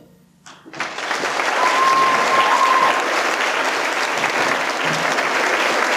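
A group of young people cheers loudly in a large echoing hall.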